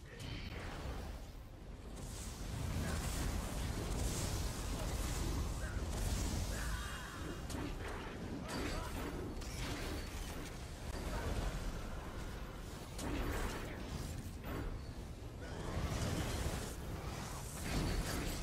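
Magic spells crackle and boom in a chaotic battle.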